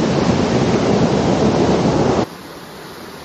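A waterfall roars and splashes close by.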